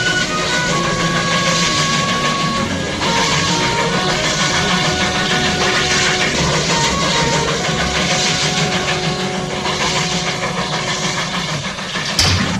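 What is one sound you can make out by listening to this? A steam locomotive chugs steadily, its puffs beating in a rhythm.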